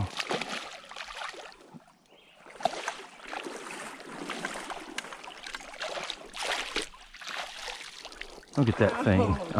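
A hooked fish thrashes and splashes in shallow water.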